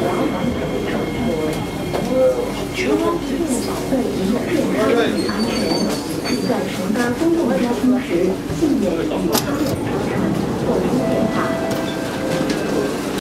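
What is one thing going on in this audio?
Men and women chatter nearby.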